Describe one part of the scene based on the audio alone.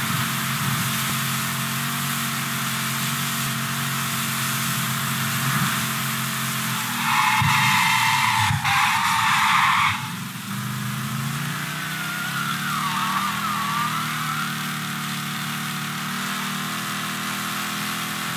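A car engine roars steadily as the car speeds along.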